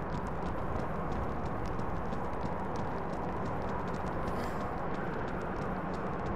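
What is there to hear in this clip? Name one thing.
Footsteps crunch quickly on rough ground.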